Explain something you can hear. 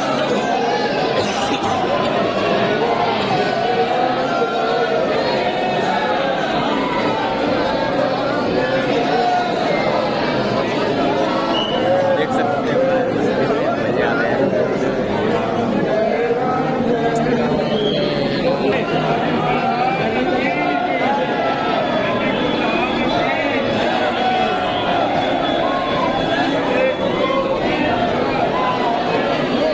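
A dense crowd of men and women chatters loudly all around, close by.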